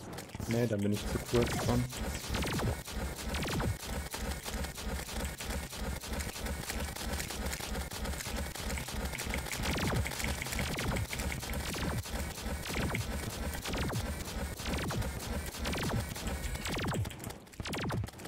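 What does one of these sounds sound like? Rapid electronic shots fire in a fast, steady stream.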